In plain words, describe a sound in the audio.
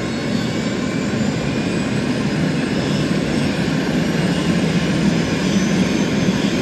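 A helicopter engine whines loudly as its rotor blades spin with a steady chopping thrum.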